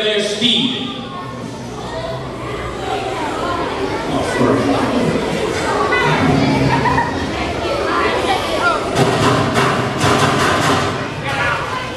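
A young person speaks through a loudspeaker in a large echoing hall.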